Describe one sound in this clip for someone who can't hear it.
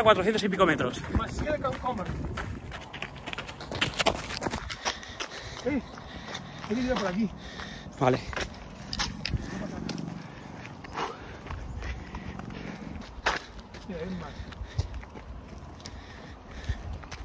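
Footsteps crunch on a gravel path at a running pace.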